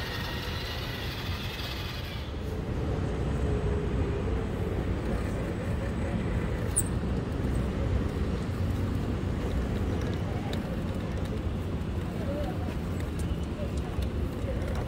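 An escalator rumbles and hums steadily.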